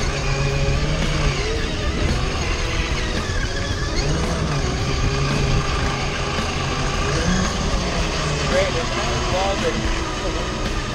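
A small electric motor whines loudly close by.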